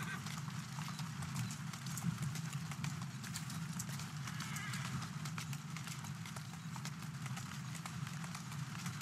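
Horse hooves clop steadily on a stone road.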